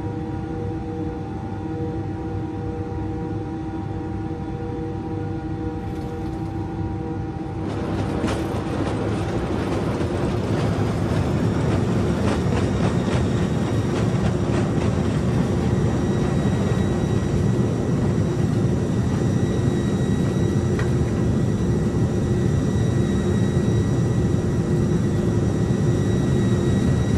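A jet engine whines steadily and grows louder and rougher as the plane speeds up.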